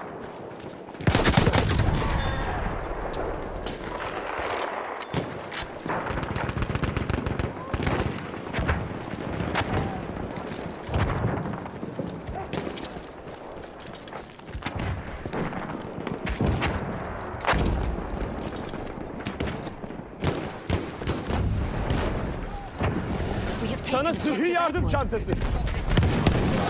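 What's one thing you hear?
A rifle fires in sharp bursts close by.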